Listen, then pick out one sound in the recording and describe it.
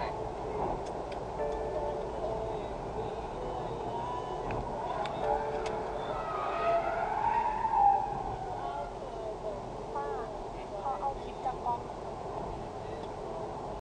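Tyres roll steadily on a fast road inside a moving car.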